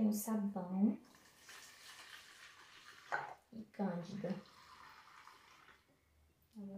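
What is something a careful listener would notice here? Water splashes and trickles in a basin.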